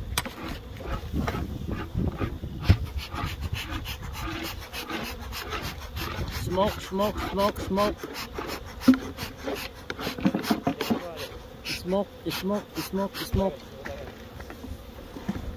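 Bees buzz around open hives.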